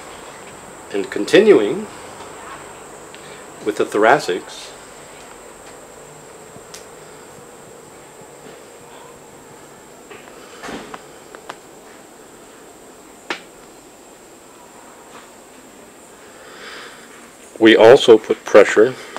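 A middle-aged man speaks calmly and close by, in short bursts with long pauses.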